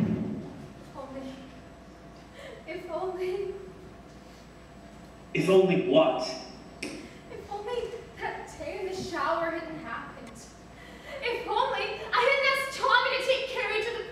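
A young woman speaks slowly and dramatically, with pauses.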